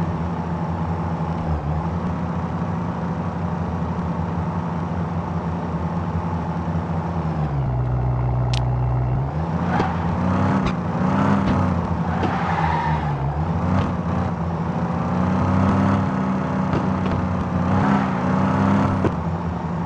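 A car engine hums and revs up and down as the car speeds along.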